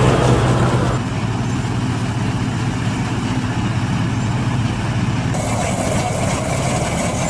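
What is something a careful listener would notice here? A combine harvester drones loudly nearby.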